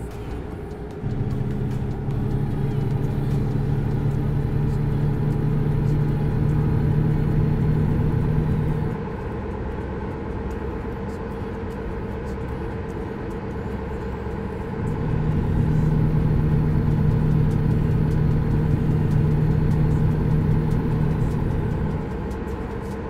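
A truck engine roars louder under acceleration, then eases off.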